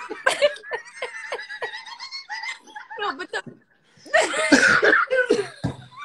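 A young man laughs over an online call.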